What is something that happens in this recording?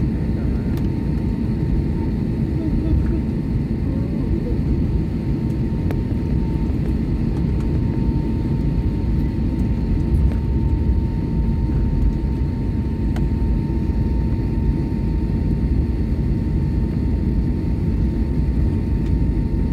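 An aircraft engine roars steadily from inside a cabin while taxiing.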